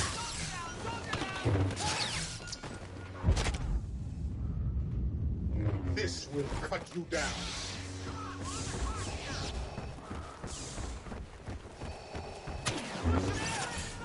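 Blaster shots zap and crackle in a game.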